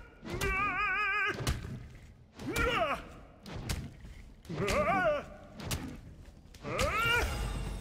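Heavy blows land with sharp thuds in a fight.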